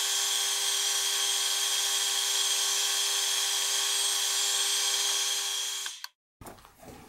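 A lathe runs with a steady high whine, then stops.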